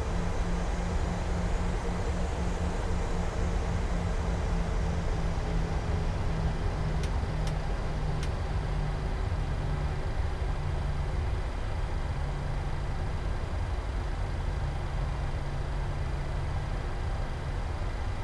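Jet engines hum and rumble steadily at idle.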